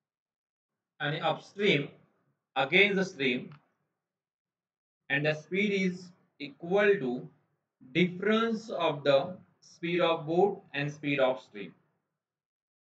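A man speaks calmly and explains, close to a microphone.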